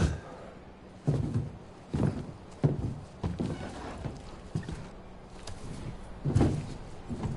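Heavy boots thud on a hard floor.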